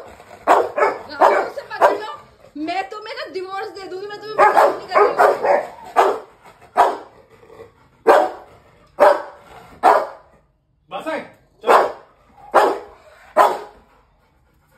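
Rottweilers bark in deep, sharp bursts close by.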